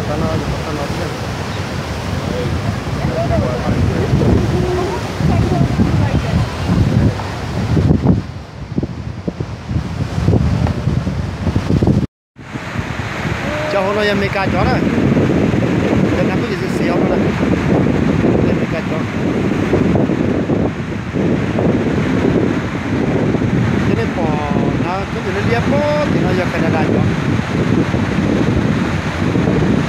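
A rushing river roars steadily outdoors.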